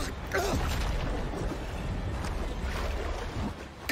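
Water splashes and churns against a boat's hull.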